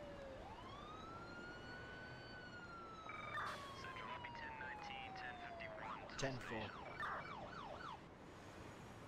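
A siren wails and slowly falls in pitch.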